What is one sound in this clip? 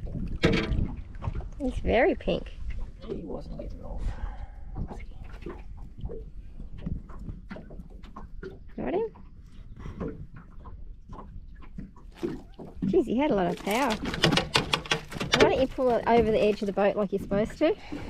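Water laps against the side of a boat.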